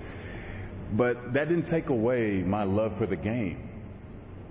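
A man speaks slowly into a microphone in a large echoing hall.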